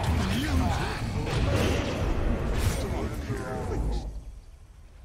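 Magic blasts and clashing battle effects crackle loudly in a video game fight.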